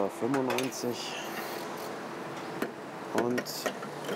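A fuel nozzle clunks into a car's filler neck.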